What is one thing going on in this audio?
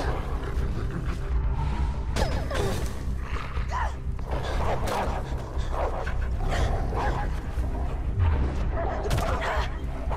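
A wolf snarls and growls fiercely.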